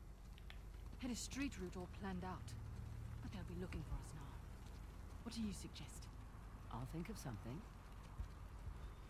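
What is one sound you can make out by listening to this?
A young woman speaks quietly with another woman.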